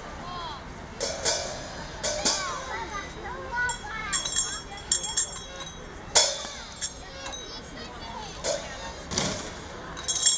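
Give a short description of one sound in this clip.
Cymbals crash several times.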